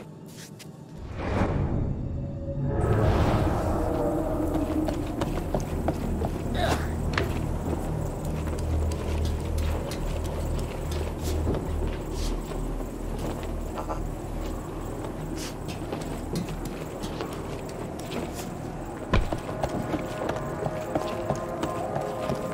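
A deep industrial hum drones steadily.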